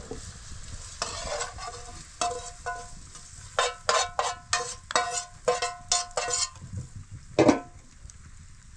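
A metal pan clatters and scrapes against a pot.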